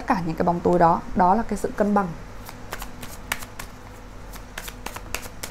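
Playing cards riffle and slap softly as they are shuffled.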